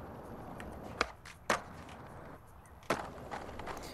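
A skateboard snaps and clacks against the ground.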